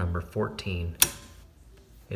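A circuit breaker switch snaps off with a click.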